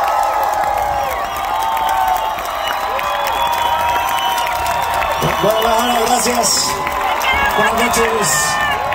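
A large crowd cheers and sings along loudly close by.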